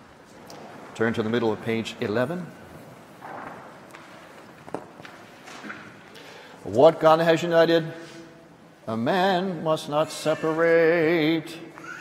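A man chants in a sung voice in a large echoing hall.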